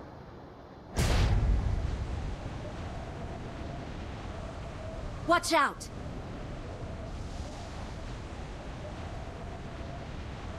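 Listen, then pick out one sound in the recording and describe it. Wind rushes loudly past during a freefall.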